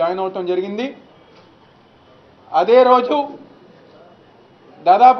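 A young man speaks calmly in short phrases, close to a microphone.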